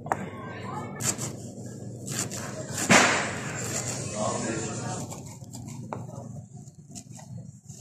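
A knife taps on a plastic cutting board as herbs are chopped.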